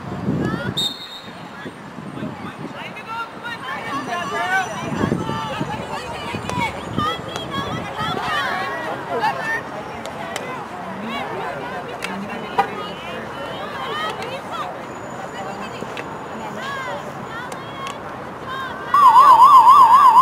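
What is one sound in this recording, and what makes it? Young women shout and call out at a distance, outdoors.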